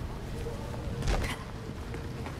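A person lands heavily on pavement after a drop.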